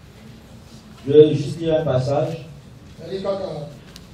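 A man speaks loudly over a microphone in a hall.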